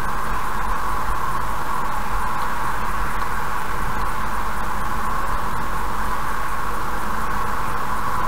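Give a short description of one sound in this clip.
Car tyres roar steadily on a road at speed.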